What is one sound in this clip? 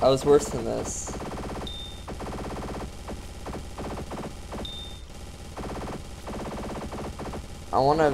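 A game's beam weapon buzzes in steady bursts.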